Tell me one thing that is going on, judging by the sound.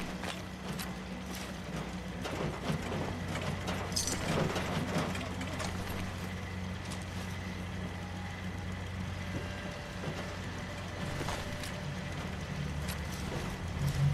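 Short clicks sound now and then as items are picked up.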